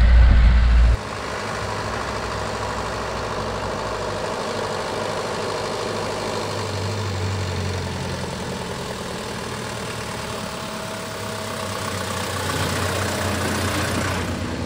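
An old truck engine hums as the truck drives closer and passes by.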